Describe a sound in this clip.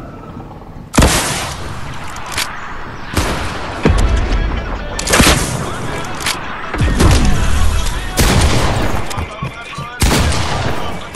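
A rocket launcher fires with loud blasts.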